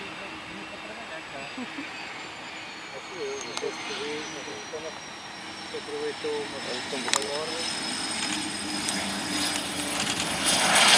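Aircraft tyres rumble on a runway.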